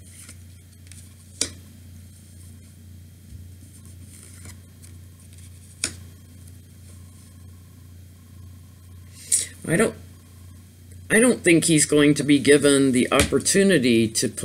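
Cards are laid down on a cloth with soft taps.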